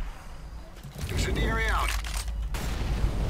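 A rifle clicks and rattles as it is readied.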